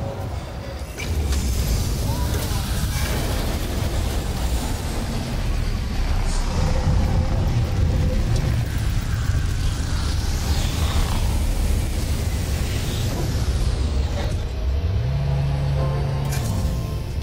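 A spaceship engine roars louder as the ship flies in.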